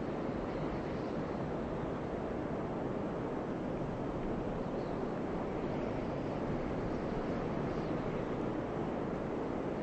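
A large creature growls with a low, steady rumble.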